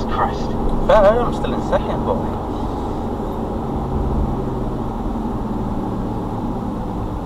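Tyres roll over the road with a steady low rumble.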